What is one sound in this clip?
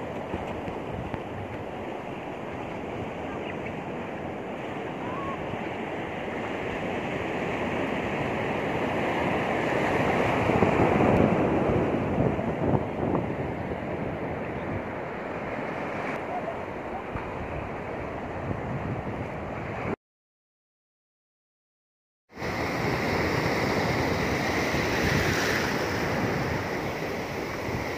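Ocean surf breaks and washes up onto a sand beach.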